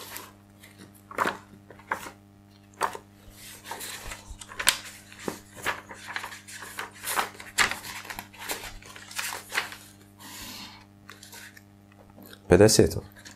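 Pages of a book rustle and flip.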